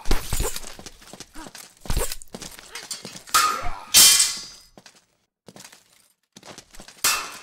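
Swords clash and ring sharply.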